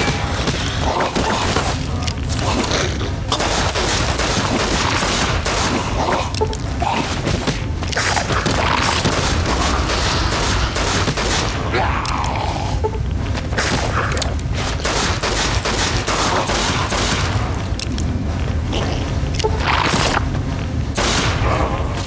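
Creatures snarl and growl nearby.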